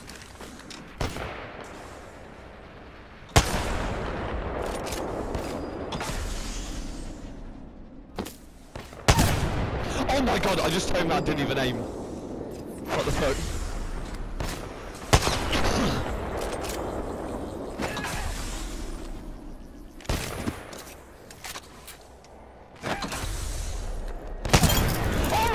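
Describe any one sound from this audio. A rifle fires loud single shots with a sharp crack.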